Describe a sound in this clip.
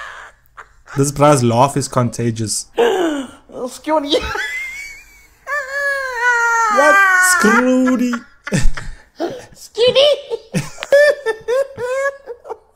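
A young man laughs and talks over an online call.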